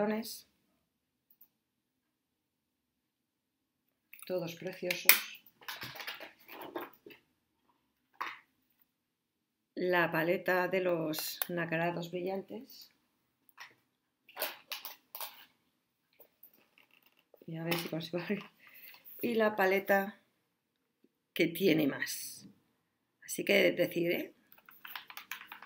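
Plastic makeup cases click and rattle in hands.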